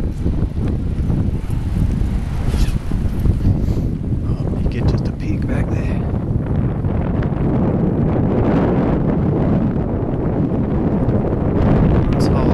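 Wind blows hard and rumbles outdoors.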